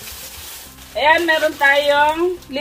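A woman speaks brightly and animatedly up close.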